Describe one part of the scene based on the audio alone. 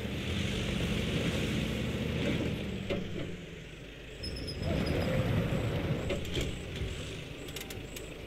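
A heavy truck engine rumbles and strains.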